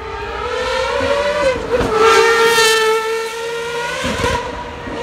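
A sports car's engine roars loudly as it speeds past close by.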